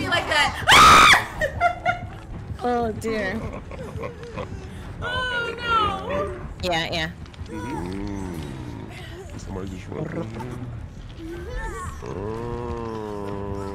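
A young woman talks and exclaims with animation into a microphone.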